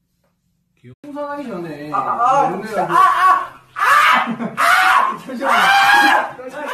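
A young man shouts and screams loudly.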